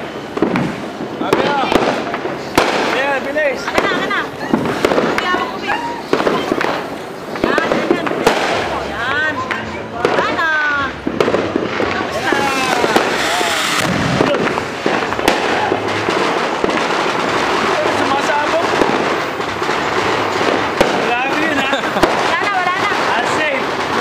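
Sparklers hiss and crackle close by.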